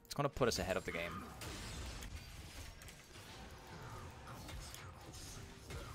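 Video game spell effects whoosh and clash.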